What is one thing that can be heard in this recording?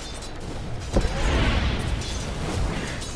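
A loud explosion booms in the game.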